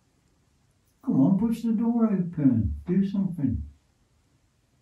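Another young man answers in a low, drawn-out voice.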